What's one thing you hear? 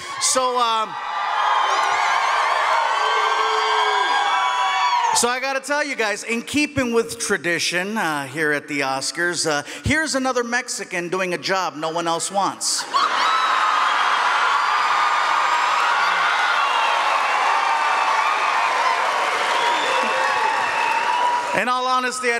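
A crowd laughs and cheers loudly.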